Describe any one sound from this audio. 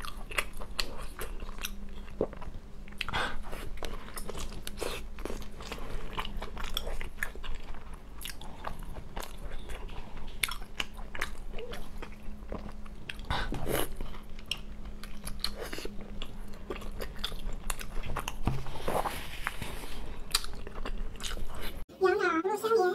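A young woman bites and chews crispy fried food up close.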